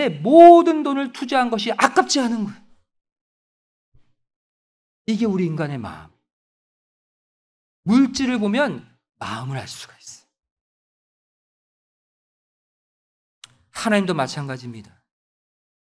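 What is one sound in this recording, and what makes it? A middle-aged man speaks with animation into a microphone, pausing between phrases.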